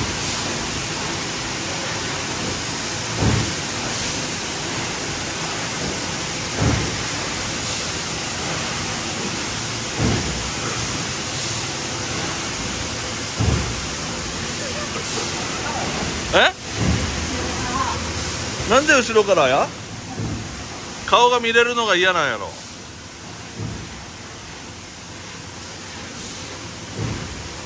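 Factory machinery hums steadily.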